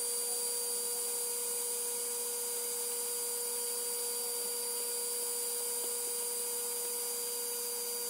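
A laser engraver whines with steady high tones as its head moves.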